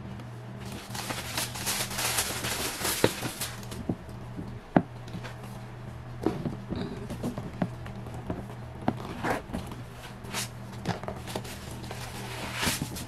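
Tissue paper crinkles and rustles.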